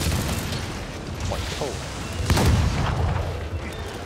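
Explosions burst with deep booms.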